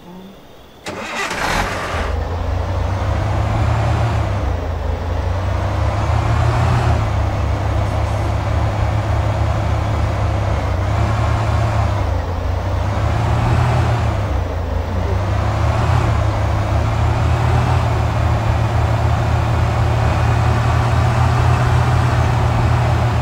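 A car engine revs up and down as it drives.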